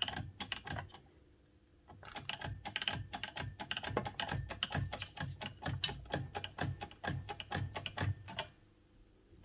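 Metal parts click and rattle in quick bursts.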